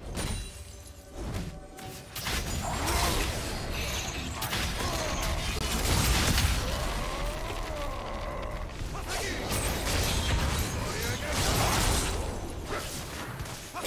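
Video game spells whoosh and crackle during a fight.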